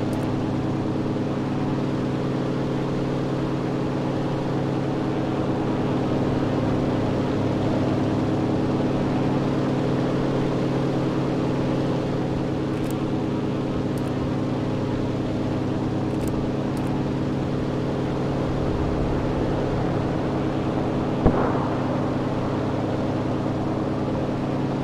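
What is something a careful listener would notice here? A propeller engine drones steadily and loudly throughout.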